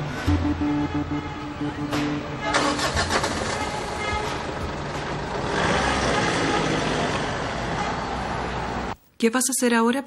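A vehicle engine rumbles low as a truck rolls slowly by.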